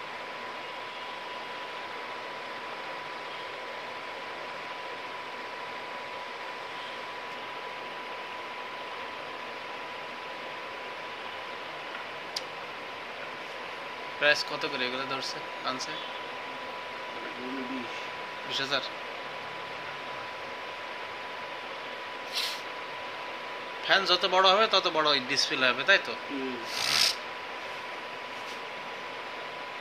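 A small electric fan whirs steadily.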